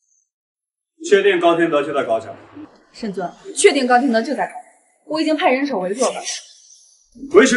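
A young woman speaks firmly and clearly.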